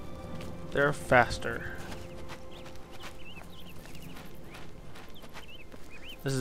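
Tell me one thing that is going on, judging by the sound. Footsteps tread on a stone path.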